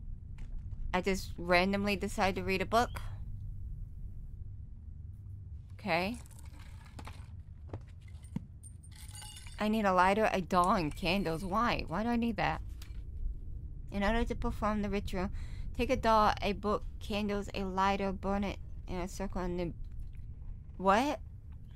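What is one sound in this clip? A young woman talks calmly into a microphone, close by.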